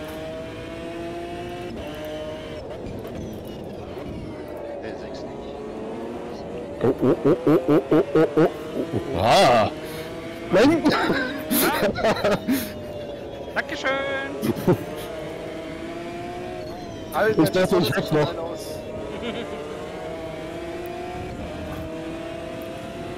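A race car engine roars at high revs, rising and falling as it shifts gears.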